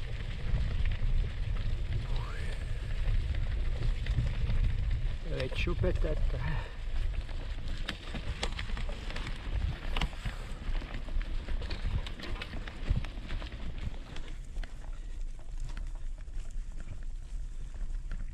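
Bicycle tyres roll and crunch over dry leaves and mud.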